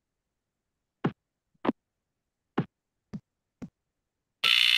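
Footsteps tap softly on a hard floor.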